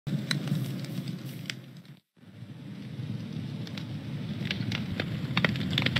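A fire crackles and pops steadily.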